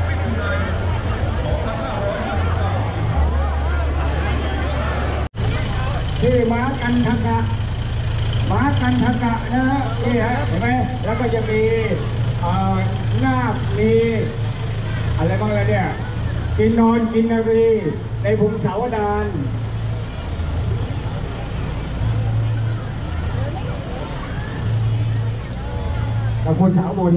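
A large crowd chatters outdoors.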